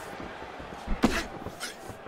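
A punch lands with a sharp thud.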